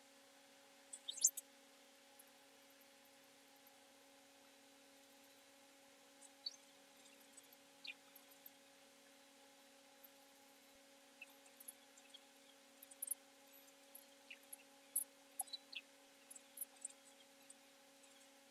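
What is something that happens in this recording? Buttons on a handheld game console click softly.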